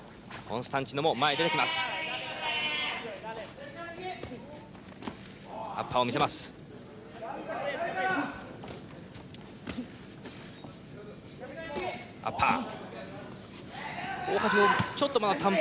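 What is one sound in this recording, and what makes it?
Boxing gloves thump against a body in quick punches.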